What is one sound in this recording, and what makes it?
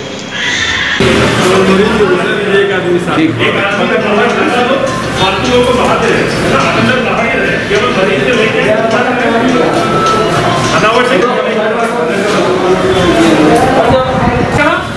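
Several men talk at once in a busy echoing room.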